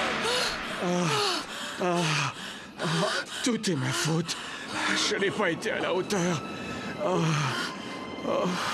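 A man sobs and cries close by.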